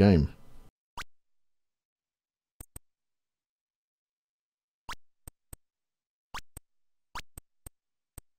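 Short electronic blips sound from a retro computer game now and then.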